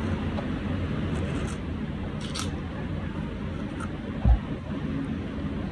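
A knife scrapes as it peels the skin off a guava.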